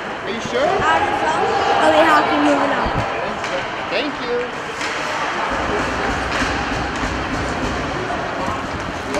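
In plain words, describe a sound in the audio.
A small crowd murmurs and calls out in a large echoing arena.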